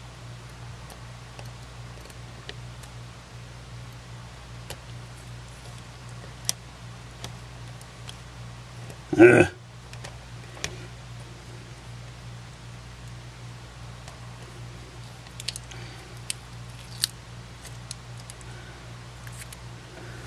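Small metal tools click and tap against plastic parts.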